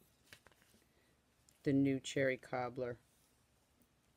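Ribbon rustles softly as it is tied into a bow.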